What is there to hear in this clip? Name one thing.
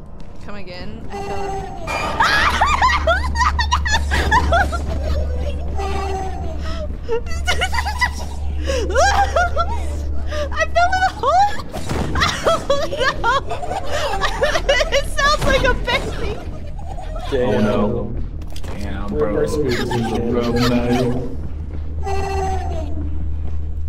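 A young woman talks and exclaims with animation close to a microphone.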